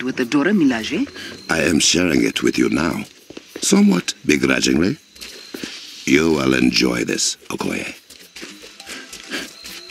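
Footsteps run quickly over grass and earth.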